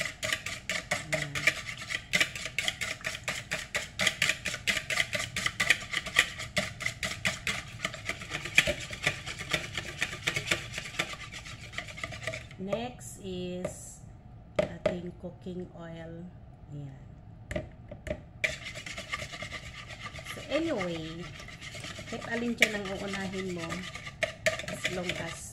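A wire whisk beats eggs quickly against a bowl.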